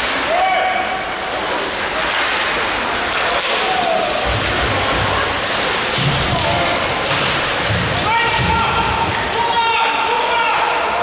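Spectators shout and cheer nearby in a large echoing rink.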